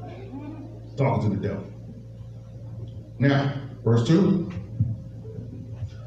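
A man speaks into a microphone over loudspeakers in a large echoing hall.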